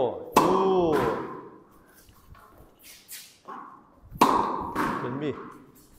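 A tennis racket strikes a ball with sharp pops that echo in a hard-walled room.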